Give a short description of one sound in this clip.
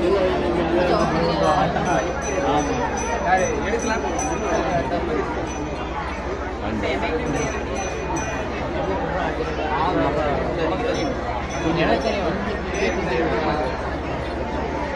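A large crowd of men and women talks and shouts nearby.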